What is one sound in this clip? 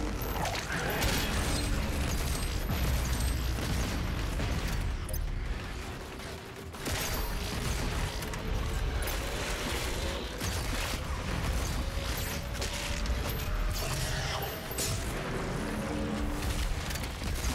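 Explosions boom and crackle.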